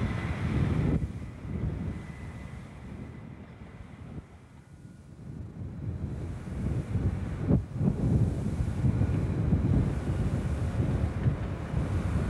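A train rumbles along the tracks in the distance.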